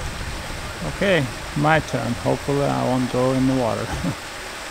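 A man speaks briefly outdoors.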